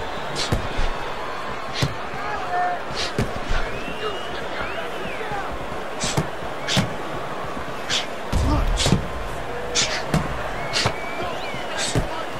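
Boxing gloves thud sharply against bodies in quick punches.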